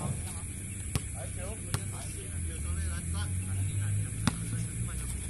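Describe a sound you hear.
A basketball thuds on hard pavement.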